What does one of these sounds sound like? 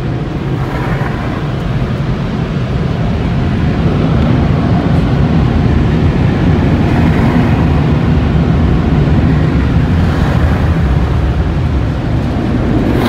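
Spinning car wash brushes scrub and slap against a car.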